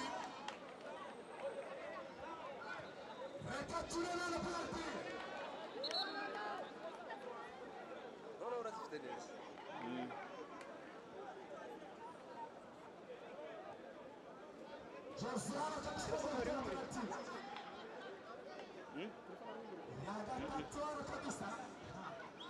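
A crowd of young men talks and calls out nearby, outdoors.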